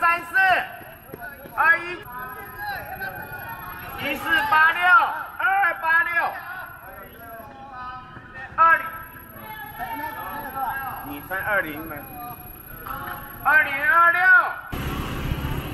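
A man calls out to runners nearby.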